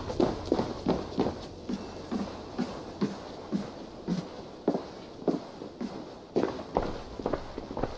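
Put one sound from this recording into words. Footsteps thump on wooden steps.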